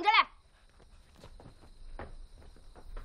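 Footsteps walk away on hard ground.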